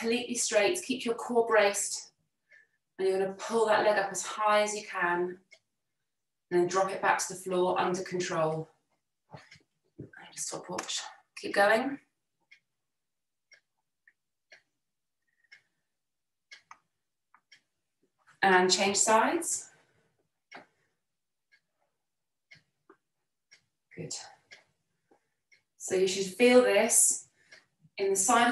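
A young woman speaks calmly and clearly, pausing now and then.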